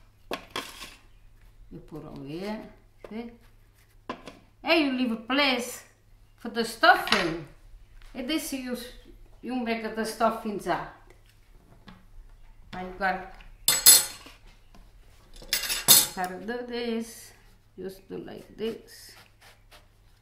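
An elderly woman speaks calmly and close by.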